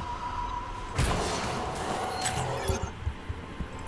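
Magic blasts and blows crackle and whoosh in a fast game battle.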